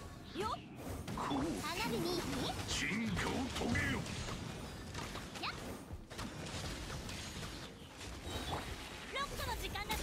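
Fiery slashes whoosh and burst.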